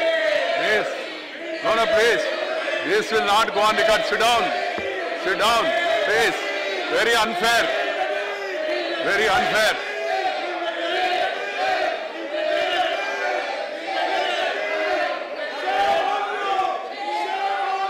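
An elderly man speaks steadily into a microphone in a large echoing hall.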